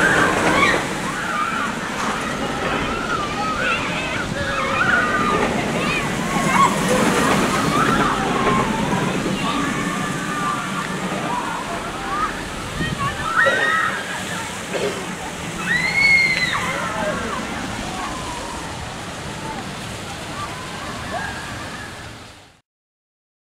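A roller coaster train rumbles and roars along its track.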